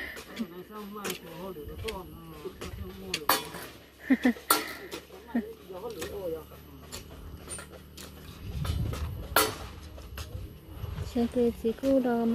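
A hand tool knocks and scrapes on soil and concrete blocks nearby.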